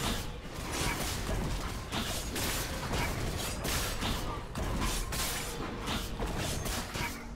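Game combat sound effects of rapid strikes and spell blasts ring out.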